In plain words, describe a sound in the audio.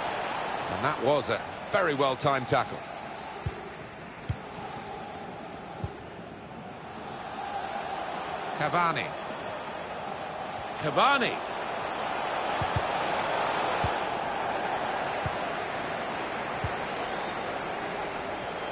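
A large crowd cheers and murmurs steadily in a stadium.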